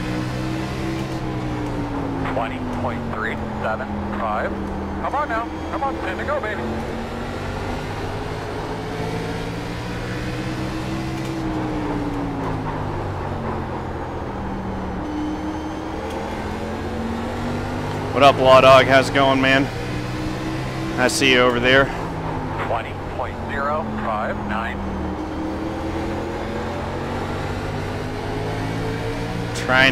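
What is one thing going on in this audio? A race car engine drones steadily, rising and falling in pitch as it shifts and brakes.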